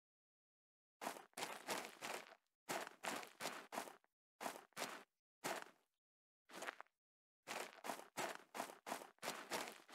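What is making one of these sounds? Footsteps crunch through sand.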